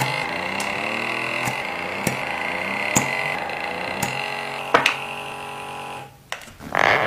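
A small electric suction device hums steadily close by.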